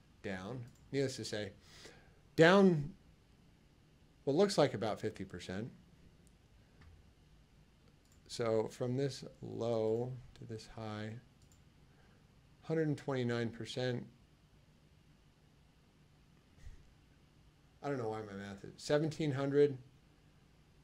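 A man speaks calmly into a close microphone, with short pauses.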